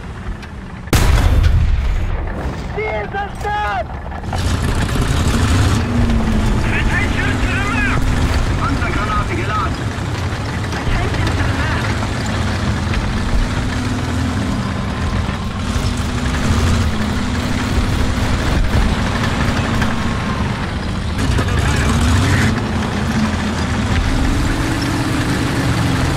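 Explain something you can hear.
A tank engine rumbles and roars steadily.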